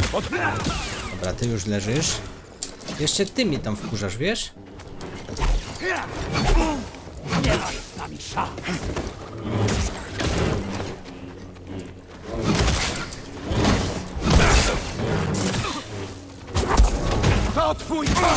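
Energy blades hum and clash in a fight.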